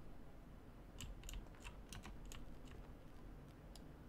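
Quick, sharp menu clicks tick one after another.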